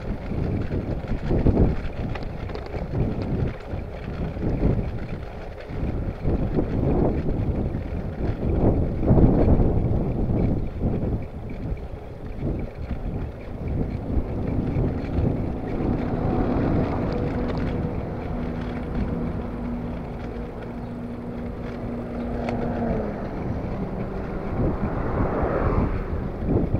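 Bicycle tyres roll and rumble over a tarmac road.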